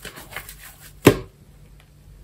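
A sponge drops into soapy water with a splash.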